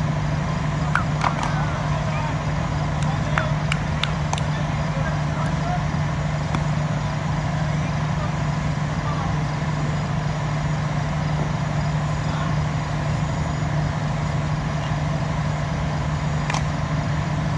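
A cricket bat sharply strikes a ball outdoors.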